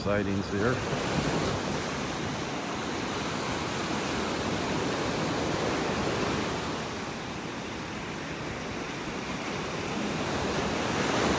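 Small waves wash and break gently onto a sandy shore.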